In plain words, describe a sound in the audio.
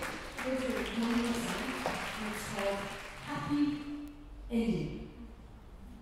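A woman sings into a microphone in a room with some echo.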